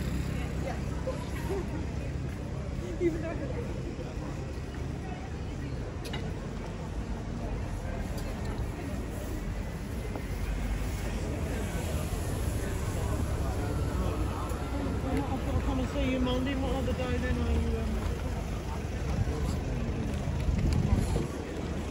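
A crowd of people murmurs nearby outdoors.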